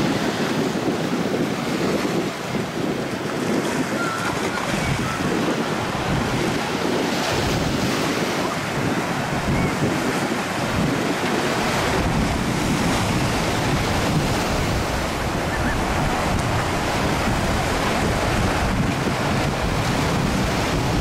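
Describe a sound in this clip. Wind gusts over the microphone outdoors.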